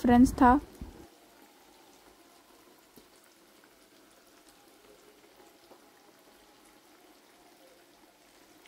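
Hot oil sizzles and bubbles steadily in a pan.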